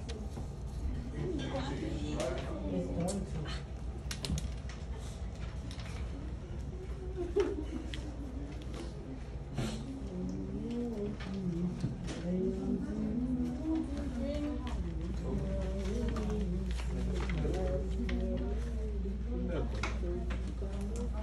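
Teenagers chatter and talk casually nearby.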